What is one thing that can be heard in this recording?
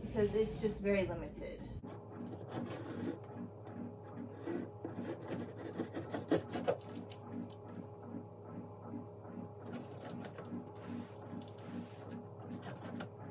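Cardboard rustles and scrapes as a box is handled.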